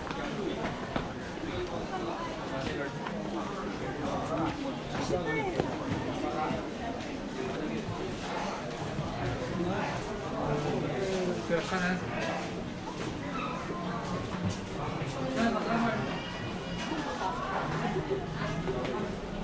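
Footsteps shuffle on paving.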